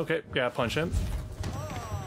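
A heavy punch lands with a thud.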